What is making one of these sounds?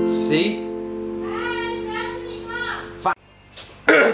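An acoustic guitar chord is strummed and rings out.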